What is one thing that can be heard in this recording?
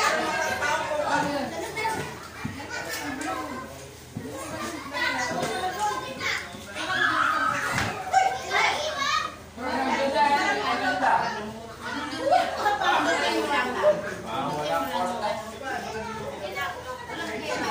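A crowd of women and children chatter and call out close by.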